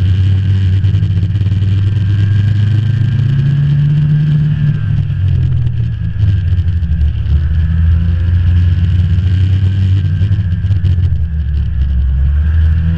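A snowmobile engine drones at speed.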